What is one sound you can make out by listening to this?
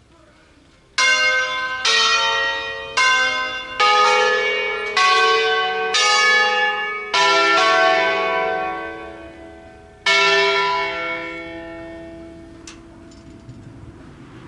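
A church bell rings loudly in slow, ringing strokes that fade away.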